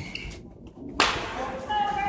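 A racket strikes a shuttlecock with a sharp crack.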